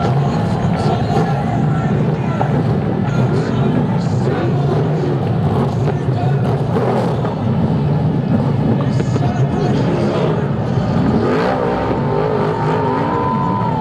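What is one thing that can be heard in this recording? Fireworks bang and crackle overhead.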